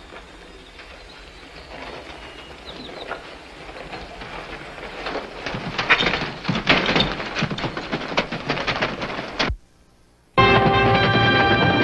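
Horses' hooves clatter on hard ground.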